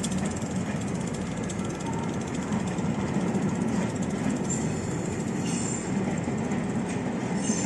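A train rumbles and clatters steadily past along the rails.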